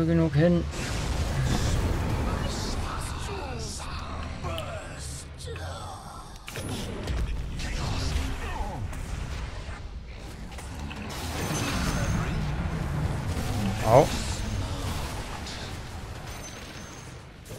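Game battle effects crash and whoosh.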